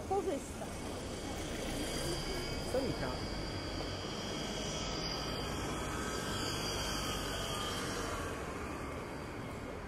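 A bus rolls past close by.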